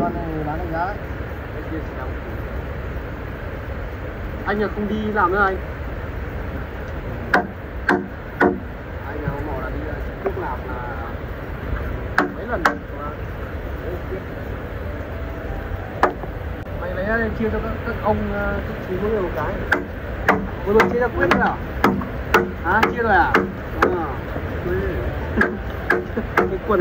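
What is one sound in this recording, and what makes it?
A man chops wood with sharp knocking blows.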